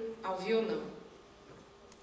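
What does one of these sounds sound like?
A young woman speaks into a microphone over loudspeakers in a large hall.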